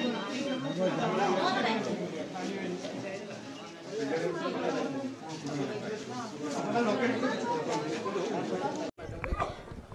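A crowd of men and women talk at once close by, in a room.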